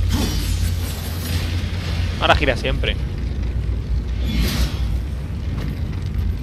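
Heavy armoured footsteps thud on stone in a large echoing hall.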